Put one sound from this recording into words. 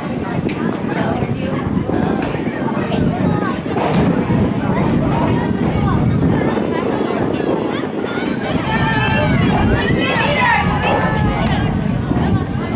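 Young women shout to each other across an open outdoor field.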